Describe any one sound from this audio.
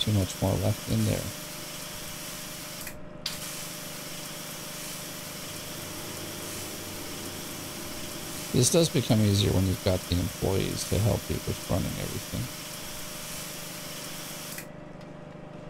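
A spray gun hisses steadily.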